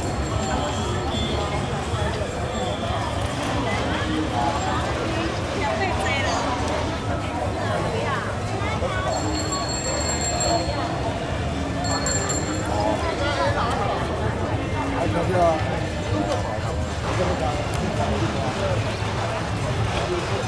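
A crowd of men and women chatter all around outdoors.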